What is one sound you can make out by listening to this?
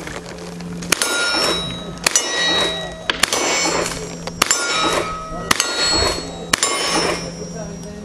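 Bullets clang against metal targets with a ringing sound.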